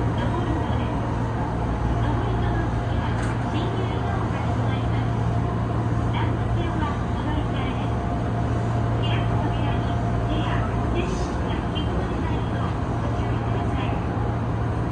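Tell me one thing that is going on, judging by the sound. Train wheels click and rattle over rail joints.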